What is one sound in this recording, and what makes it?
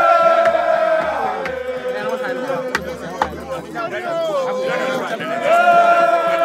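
A crowd of men and women sings loudly close by.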